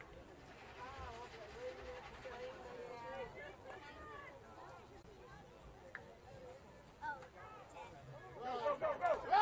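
Teenage boys and men talk and call out from a sideline outdoors.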